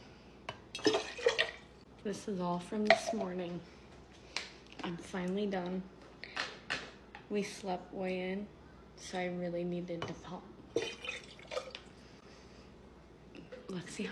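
Milk pours and splashes into a glass jar.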